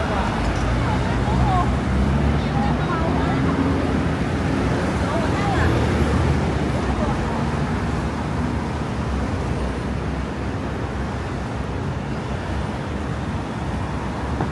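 City traffic rumbles steadily along a street nearby.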